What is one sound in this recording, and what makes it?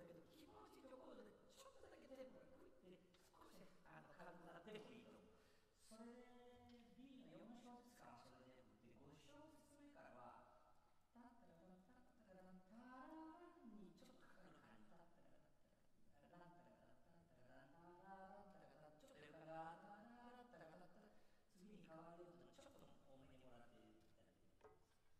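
A man speaks calmly at a distance in a large echoing hall.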